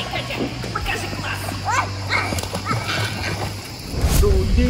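A young girl squeals playfully close by.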